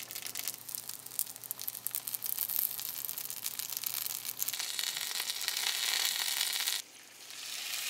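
Dumplings sizzle in hot oil in a pan.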